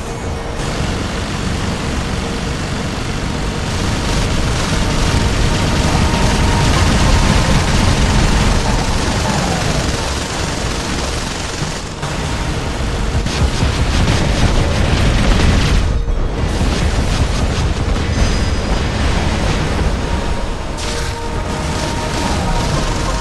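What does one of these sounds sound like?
Heavy guns and energy weapons fire in rapid, continuous bursts.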